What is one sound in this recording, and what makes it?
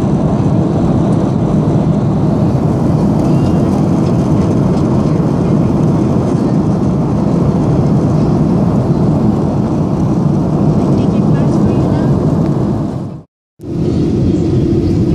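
A jet airliner's engines roar steadily inside the cabin.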